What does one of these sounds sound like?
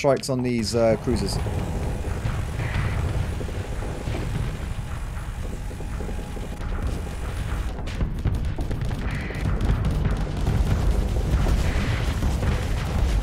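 Laser weapons fire with a low, steady rumble.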